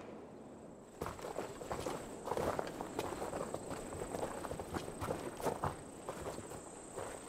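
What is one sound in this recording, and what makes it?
Footsteps crunch on the ground outdoors.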